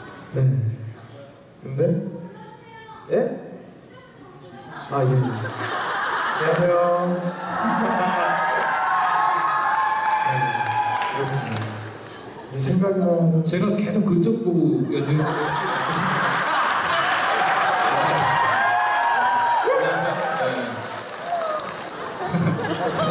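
A young man speaks into a microphone over loudspeakers in a large hall.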